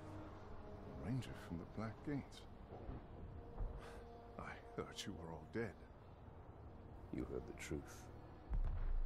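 A middle-aged man speaks calmly and gravely, close by.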